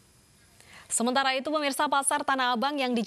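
A woman speaks calmly and clearly into a microphone, close by.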